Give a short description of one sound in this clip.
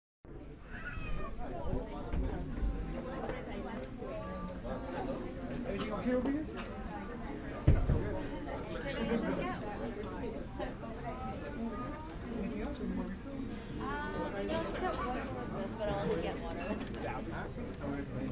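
A crowd of men and women chatter all around in a large room.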